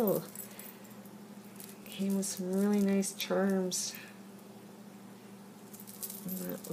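Glass beads clink softly as fingers handle them.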